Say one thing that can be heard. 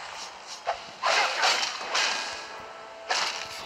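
A magic spell whooshes loudly.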